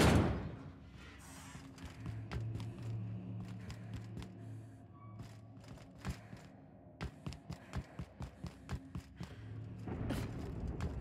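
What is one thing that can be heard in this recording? Footsteps clank on a metal floor.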